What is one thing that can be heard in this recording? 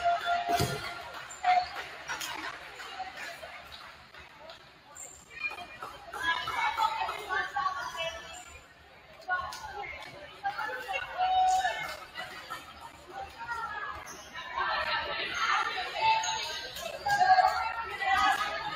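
Young women players shout and cheer together.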